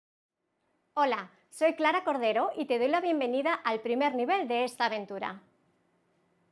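A young woman speaks clearly and with animation into a microphone.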